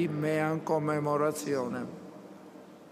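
An elderly man chants in a steady sung voice through a microphone.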